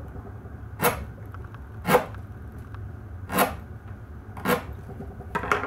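A knife chops sharply into a wooden block.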